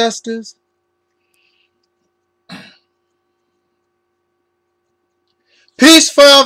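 A man speaks calmly, close to a microphone, in short bursts with silent pauses between them.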